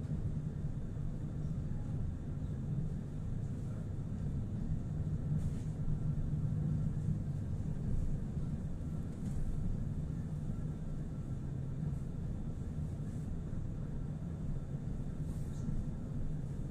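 A vehicle's engine hums low and steady from inside while it moves along.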